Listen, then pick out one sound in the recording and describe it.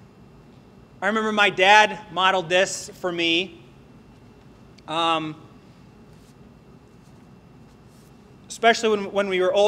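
A man speaks clearly into a microphone, pausing between phrases.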